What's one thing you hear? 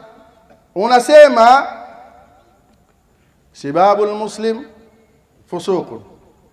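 A man speaks with emphasis into a microphone, heard through a loudspeaker in an echoing room.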